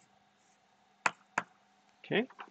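Chalk taps against a blackboard.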